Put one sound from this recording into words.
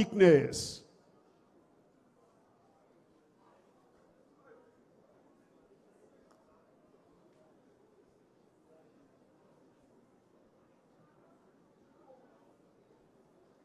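A large crowd murmurs quietly.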